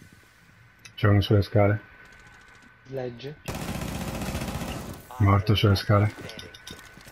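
Gunshots fire in short, loud bursts.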